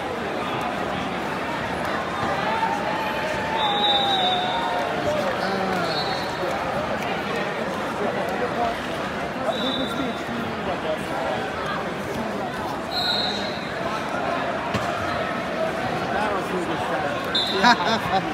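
A crowd chatters throughout a large echoing hall.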